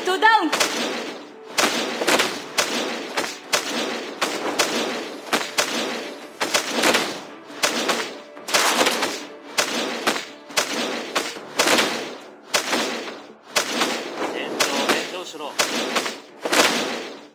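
Rapid magical strikes whoosh and crack over and over.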